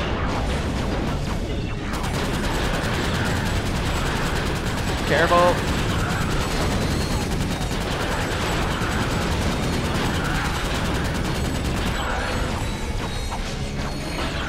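Sci-fi blaster guns fire in rapid bursts.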